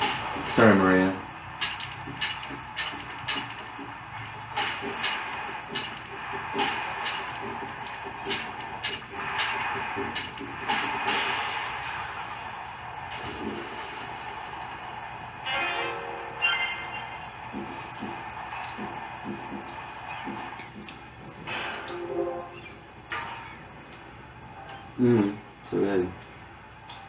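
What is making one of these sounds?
Video game sound effects and music play through a television speaker.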